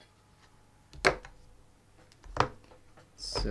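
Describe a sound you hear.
A magnet clicks down onto a metal board.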